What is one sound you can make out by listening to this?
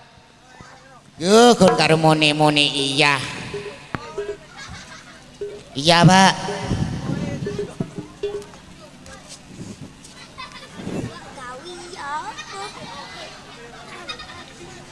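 A crowd of children chatters and shouts in the background.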